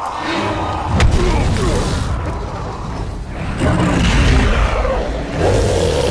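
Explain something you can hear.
A huge beast roars deeply.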